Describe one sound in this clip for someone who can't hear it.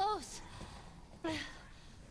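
A man speaks with surprise.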